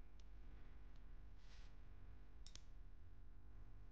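Chopsticks tap against a porcelain bowl.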